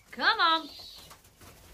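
A bird calls loudly nearby in short, rising and falling cries.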